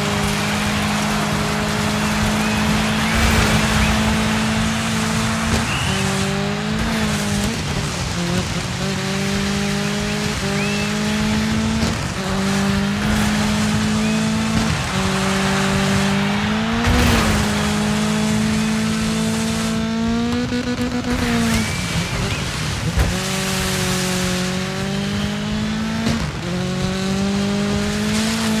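A car engine roars loudly, climbing in pitch and dropping back with each gear change.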